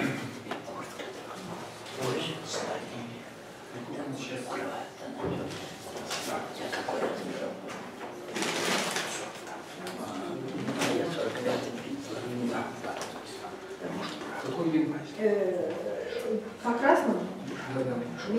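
A middle-aged man speaks calmly in a small echoing room.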